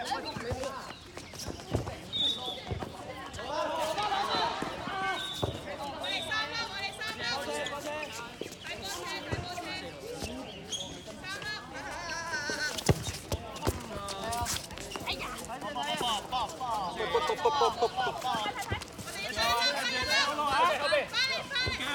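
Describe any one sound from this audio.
A ball bounces and thumps on a hard court.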